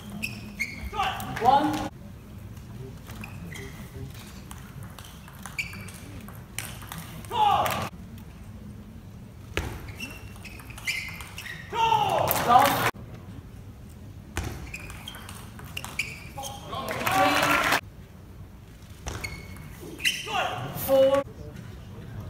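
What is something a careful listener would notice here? A young man shouts loudly after winning a point.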